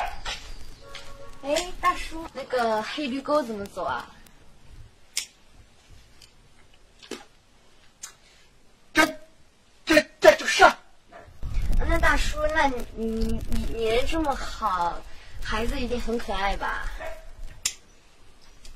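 A young woman speaks in a friendly way, close by.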